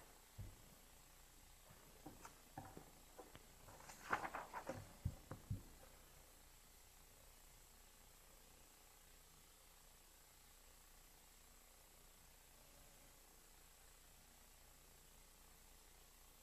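A pen scratches softly across paper.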